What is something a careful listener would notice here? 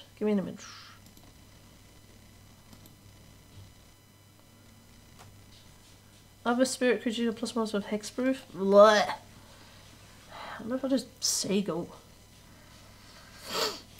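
A young woman talks casually into a nearby microphone, with pauses.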